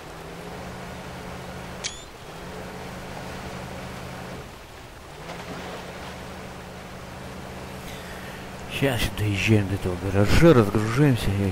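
Water splashes around a truck's wheels.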